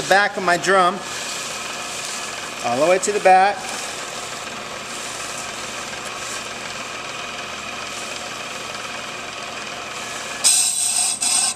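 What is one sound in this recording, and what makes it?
A lathe spins with a steady whir.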